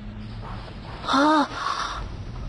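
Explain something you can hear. A young boy cries out loudly with a rising and falling voice.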